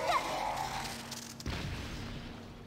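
Explosions boom in quick succession.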